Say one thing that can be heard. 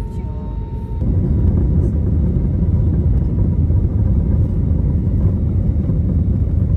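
Jet engines roar up inside an airliner cabin for the takeoff roll.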